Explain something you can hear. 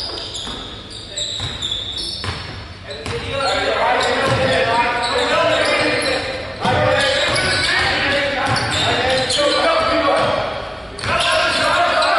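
A basketball bounces repeatedly on a hard floor in an echoing hall.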